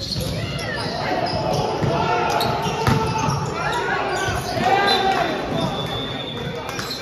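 Players shout and call out across a large echoing hall.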